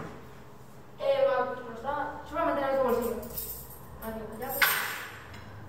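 A young boy speaks.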